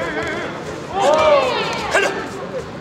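A young man shouts sharply.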